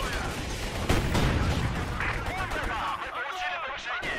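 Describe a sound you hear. Shells explode with dull booms.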